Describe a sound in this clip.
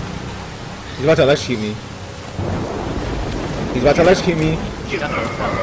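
A young man speaks urgently at close range.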